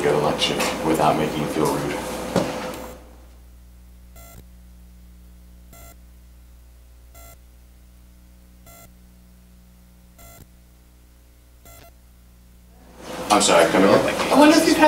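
A man speaks to an audience in a room.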